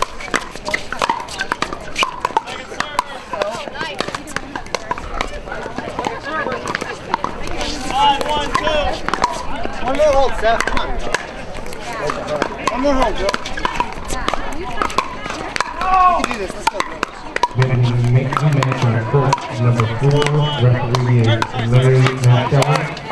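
Paddles pop against a plastic ball in quick rallies.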